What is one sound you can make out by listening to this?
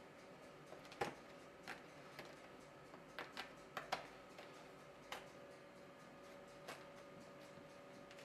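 Plastic film crinkles and rustles under a hand.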